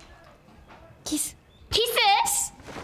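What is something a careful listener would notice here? A young girl laughs and squeals excitedly up close.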